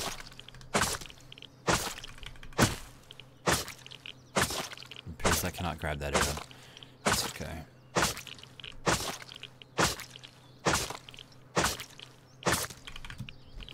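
A tool chops repeatedly into an animal carcass with wet thuds.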